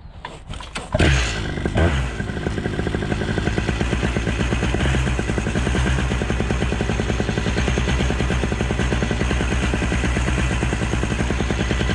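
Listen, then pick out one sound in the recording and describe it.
A small motor starts and buzzes steadily up close.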